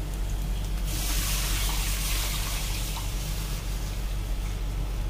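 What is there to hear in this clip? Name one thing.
Batter pours and sizzles into a hot pan.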